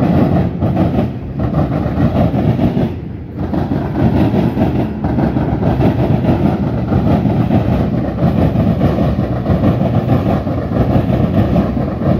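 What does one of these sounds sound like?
A freight train rumbles and clatters past on the tracks nearby.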